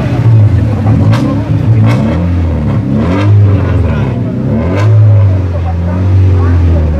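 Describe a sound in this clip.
A rally car engine idles and revs loudly close by.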